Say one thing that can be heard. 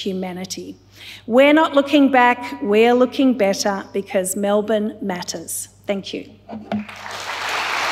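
A woman speaks emotionally into a microphone in a large hall.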